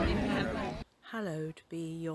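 An older woman speaks clearly and close up.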